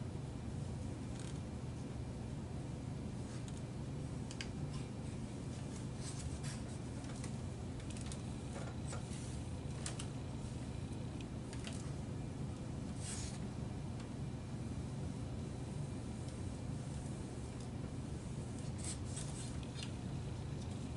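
Stiff plastic parts click and rustle as they are handled.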